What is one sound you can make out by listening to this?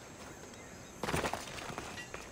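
A heavy thud sounds as a figure lands from a jump.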